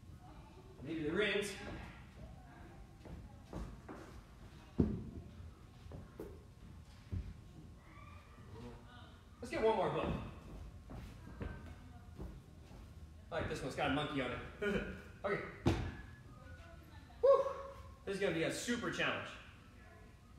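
A man talks with animation in a large echoing room.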